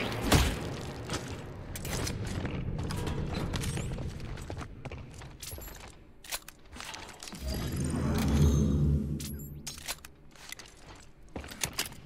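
Heavy boots thud and clank on a metal floor.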